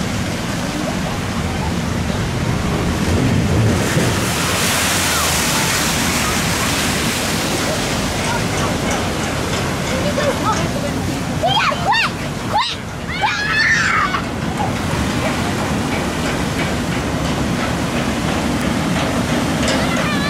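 Choppy water sloshes and churns.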